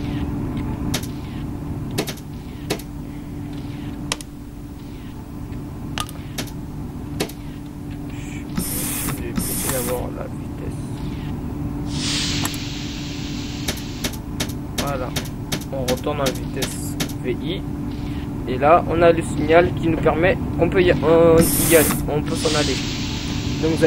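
A train's motor hums steadily.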